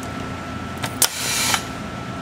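A pneumatic cylinder on a coil winding machine hisses.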